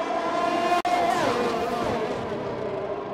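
A racing car engine drops in pitch as it slows for a corner.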